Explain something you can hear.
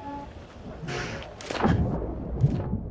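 Water splashes as a swimmer plunges in.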